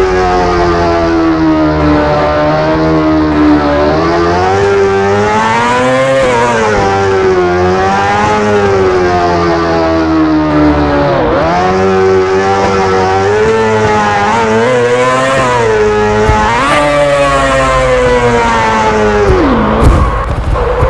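A motorcycle engine revs high, rising and falling as it speeds up and slows down.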